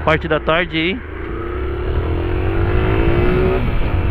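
A single-cylinder motorcycle engine revs up as the bike accelerates.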